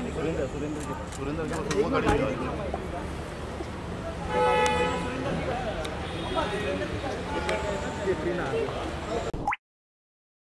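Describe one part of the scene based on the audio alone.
A crowd of men talks and calls out nearby.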